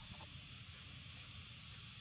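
A baby monkey squeaks softly.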